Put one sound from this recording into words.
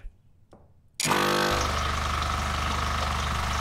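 An electrical machine hums and buzzes loudly.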